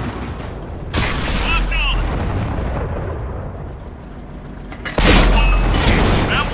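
A tank cannon fires with a loud boom.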